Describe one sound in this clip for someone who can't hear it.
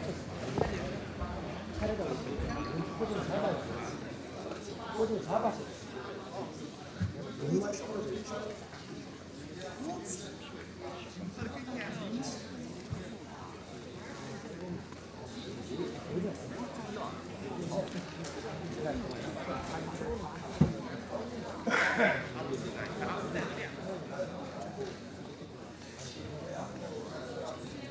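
A crowd of people murmurs and chats in a large room.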